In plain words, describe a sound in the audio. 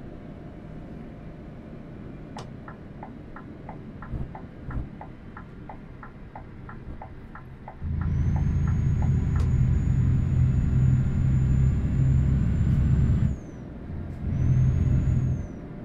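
A truck engine rumbles steadily, then roars louder as it accelerates.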